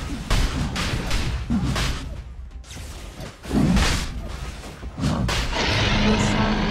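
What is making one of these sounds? Magic spell effects whoosh and crash in a fast battle.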